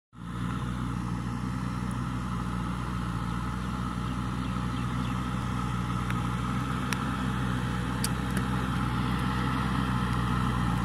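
A backhoe loader's diesel engine rumbles steadily nearby.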